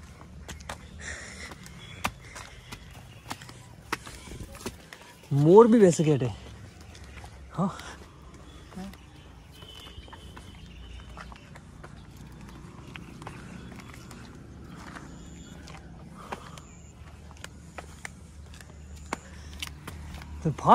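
Footsteps scuff on stone steps outdoors.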